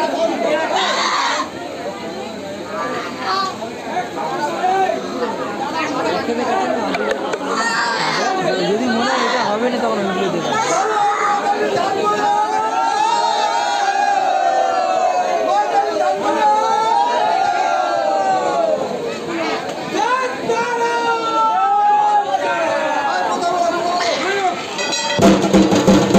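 A crowd of men and women talks and calls out loudly close by, outdoors.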